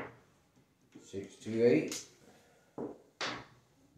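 Dice clatter and tumble across a table.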